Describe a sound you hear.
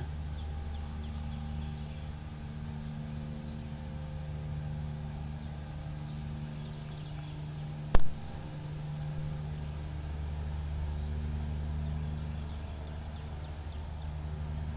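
An opossum rustles softly through dry leaves and grass.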